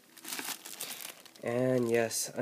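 A plastic bag crinkles as it is handled.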